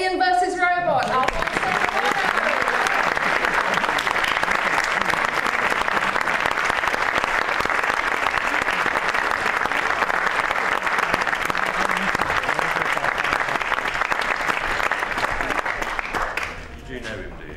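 Applause rings out loudly and then fades.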